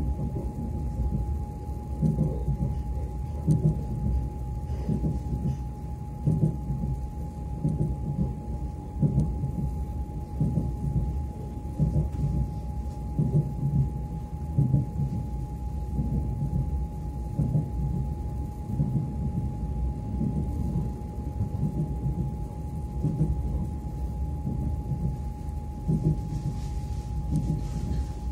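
A train rumbles steadily along the tracks.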